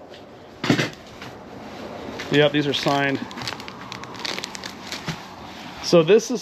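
Plastic sleeves crinkle as they are handled.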